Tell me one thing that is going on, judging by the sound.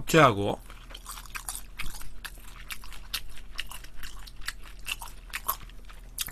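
A young man chews food with crisp, wet smacking sounds.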